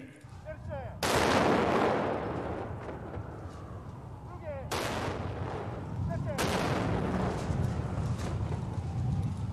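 Cannons fire booming shots that echo and roll away.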